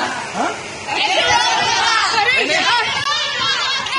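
Young women laugh and shout excitedly.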